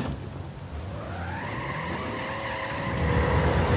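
A jeep engine starts and revs up.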